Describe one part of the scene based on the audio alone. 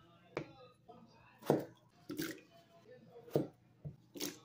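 A knife chops through potato onto a cutting board.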